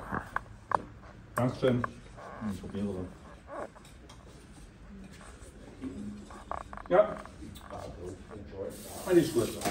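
Pots and dishes clink and clatter.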